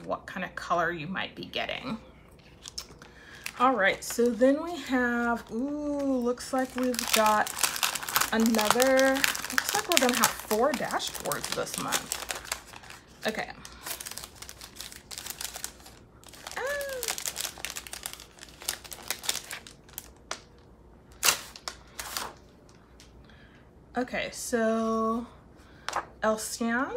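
Sheets of paper rustle and slide as they are handled.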